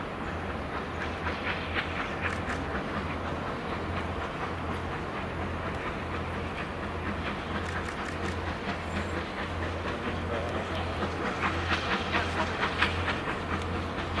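Train wheels clatter and squeal over rail points.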